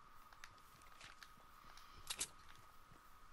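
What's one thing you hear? A game's building piece snaps into place with a sharp click.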